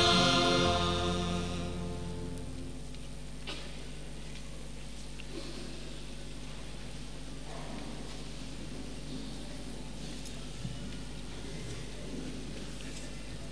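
A man speaks softly into a microphone.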